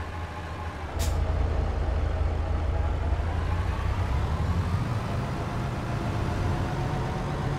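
A truck engine revs up and the truck pulls away.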